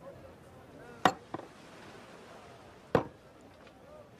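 Glasses clink on a table.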